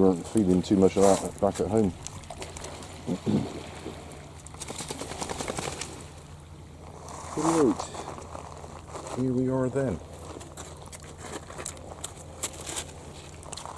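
A dog's paws crunch on loose pebbles.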